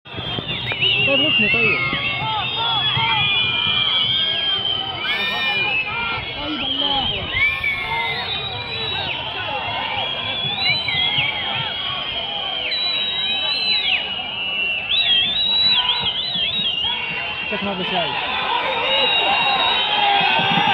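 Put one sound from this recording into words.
A large crowd chatters and calls out in a wide, open stadium.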